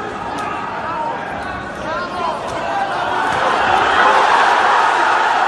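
A large crowd shouts and cheers loudly in a big echoing hall.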